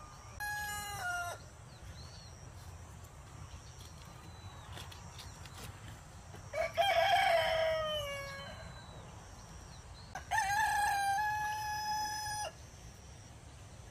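Lettuce leaves snap softly as they are picked by hand.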